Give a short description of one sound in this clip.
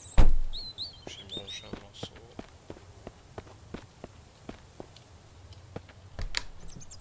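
Footsteps walk at a steady pace.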